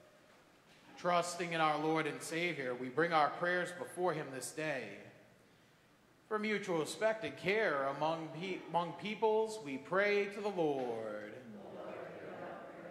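A man reads aloud slowly and solemnly into a microphone in a large echoing room.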